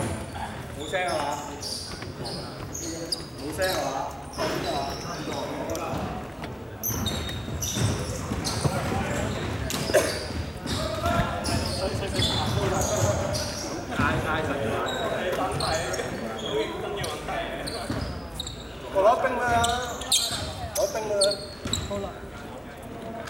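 Men talk to one another in a large echoing hall.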